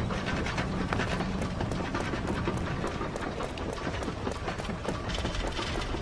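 Quick footsteps patter as a character runs on a hard floor.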